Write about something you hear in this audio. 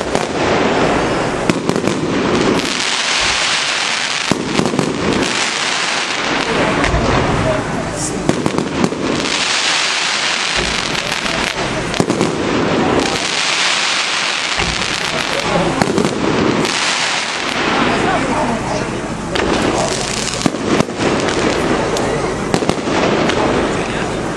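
Fireworks burst with sharp bangs overhead.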